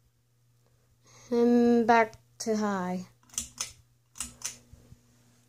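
A pull chain clicks on a ceiling fan.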